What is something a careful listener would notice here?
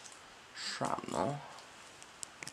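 A young man speaks briefly and calmly, close by.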